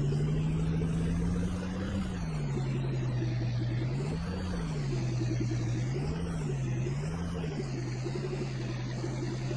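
A pickup truck engine hums steadily, rising and falling in pitch as it revs.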